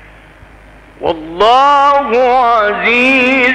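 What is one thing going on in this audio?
An elderly man chants in a long, drawn-out melodic voice.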